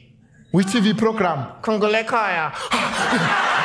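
A young man speaks in a funny, squeaky puppet voice into a microphone.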